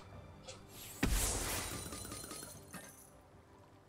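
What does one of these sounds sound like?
Magical bolts whoosh and burst in a video game.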